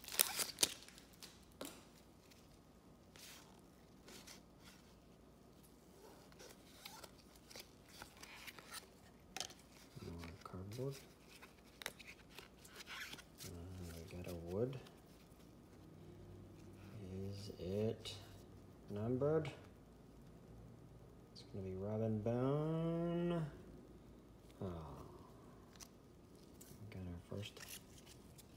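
Trading cards rustle and flick as they are sorted by hand.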